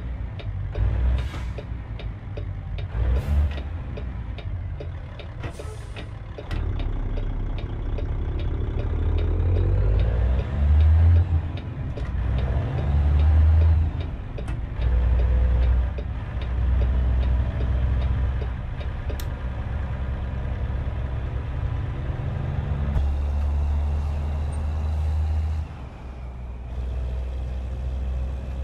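A truck's diesel engine rumbles steadily and revs up and down.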